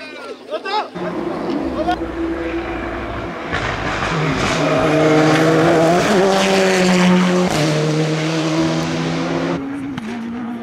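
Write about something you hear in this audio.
A rally car passes at full throttle.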